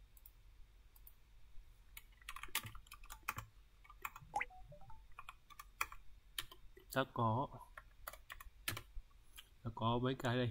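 Keys clack on a keyboard in quick bursts.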